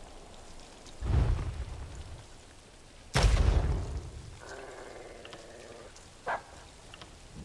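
Short game menu sounds click and whoosh as items are selected.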